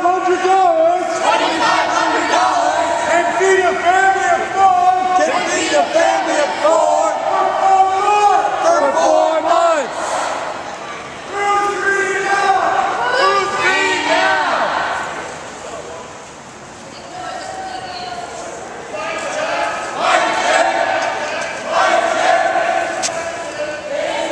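A crowd of young men and women chants loudly in unison.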